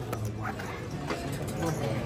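Casino chips clack together.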